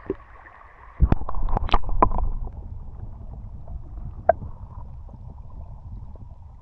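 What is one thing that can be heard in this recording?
Water splashes loudly and the sound goes dull and muffled, as if heard underwater.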